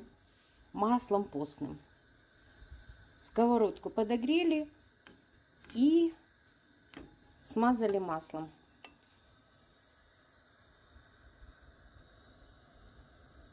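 A fork scrapes butter across a pan.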